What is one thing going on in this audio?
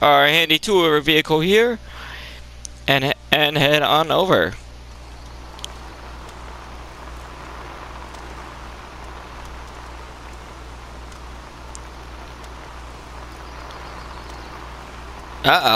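A small car engine hums steadily.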